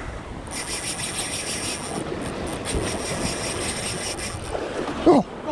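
A fishing reel whirs as its handle is cranked quickly.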